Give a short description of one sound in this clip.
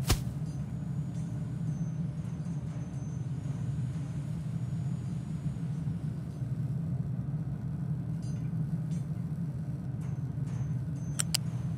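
Machinery hums low and steadily.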